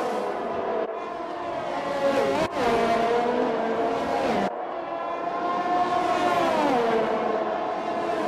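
Racing car engines roar past one after another.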